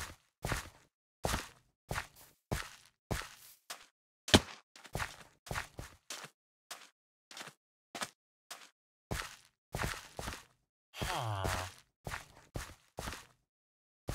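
Footsteps crunch steadily on gravel and dirt.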